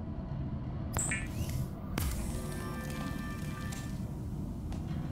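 A machine whirs and shimmers electronically as it builds something.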